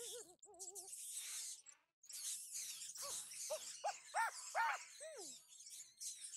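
Rats squeak and scurry in a swarm.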